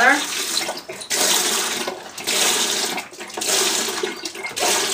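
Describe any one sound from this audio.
Liquid pours into a plastic bucket.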